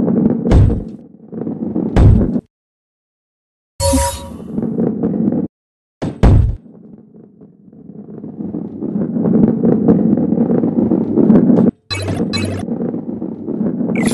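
A heavy ball rolls and rumbles along a wooden track.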